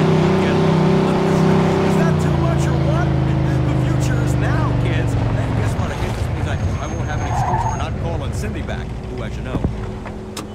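A car engine drones loudly and its pitch falls as it slows.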